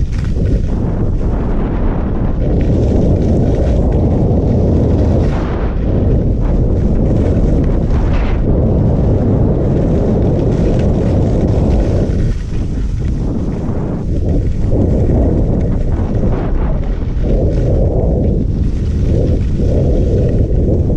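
Wind rushes loudly past a skier moving fast downhill.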